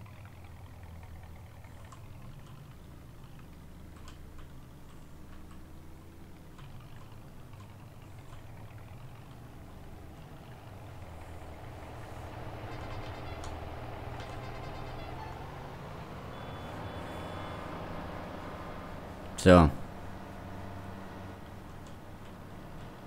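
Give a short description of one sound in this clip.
A car engine hums, heard from inside the car.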